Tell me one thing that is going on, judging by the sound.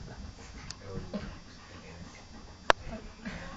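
A dog wriggles on its back, rubbing and scuffling against a carpet.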